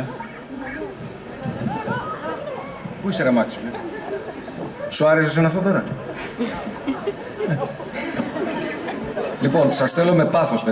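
A middle-aged man speaks expressively into a microphone, heard over a loudspeaker in a large hall.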